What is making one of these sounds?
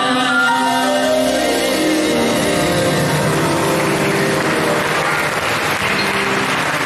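A small ensemble of violins, flutes and plucked strings plays a lively tune in a large echoing hall.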